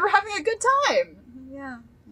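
A young woman laughs loudly into a microphone.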